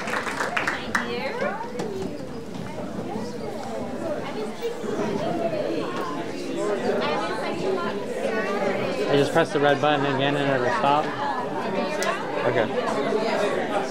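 A crowd of men and women chat and murmur nearby as they get up and move about.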